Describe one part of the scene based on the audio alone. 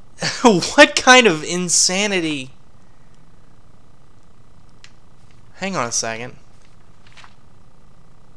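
Paper pages turn with a soft rustle.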